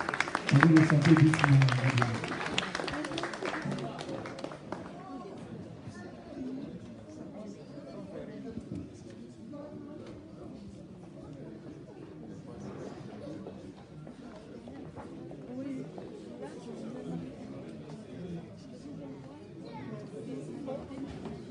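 Many men and women chatter in the background.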